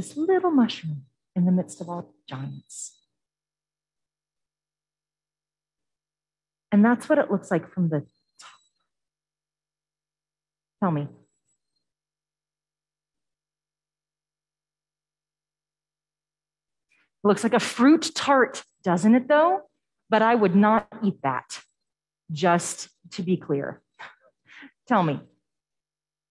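A woman speaks calmly with pauses, heard through a microphone in a large room over an online call.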